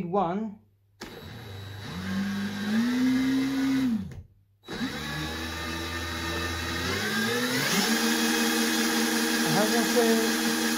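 An electric motor whirs as it spins, rising and falling in pitch.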